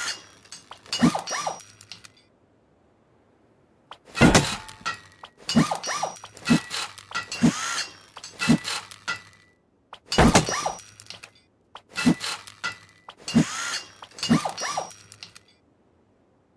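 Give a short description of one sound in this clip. A hammer strikes stone repeatedly with sharp, crumbling impacts.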